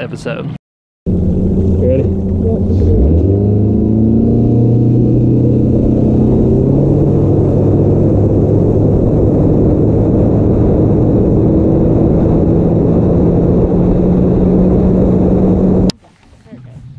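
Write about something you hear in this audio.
A boat motor roars steadily.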